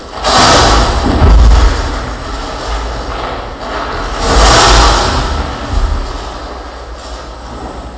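Amplified harsh noise roars in loud surges.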